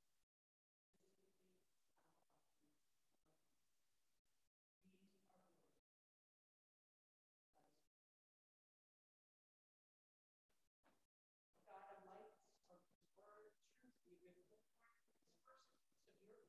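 An older woman speaks into a microphone, heard through a loudspeaker in a large echoing hall, with long pauses.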